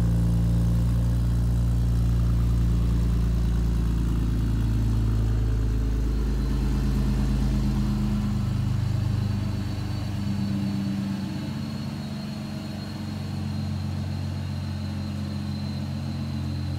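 A car engine idles steadily with a low rumble nearby.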